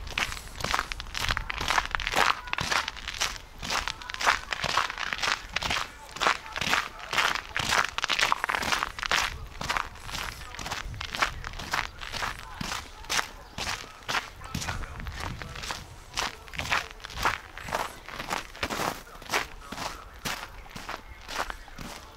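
Footsteps crunch steadily through snow outdoors.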